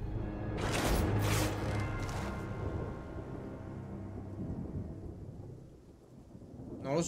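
A short game tune plays and rings out.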